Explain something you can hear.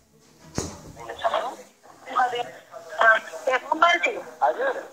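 A woman talks over a phone line.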